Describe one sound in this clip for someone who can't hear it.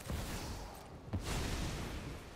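A card lands with a soft magical thud.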